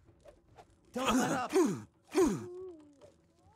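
A sword swooshes through the air.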